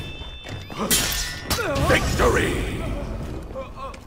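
A man grunts and cries out in pain.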